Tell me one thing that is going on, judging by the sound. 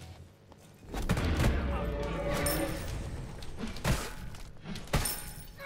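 Weapons strike with sharp thuds.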